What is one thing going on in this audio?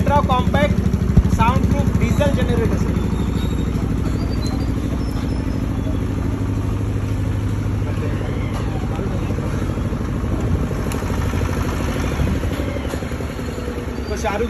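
A diesel generator runs with a steady, throbbing rumble.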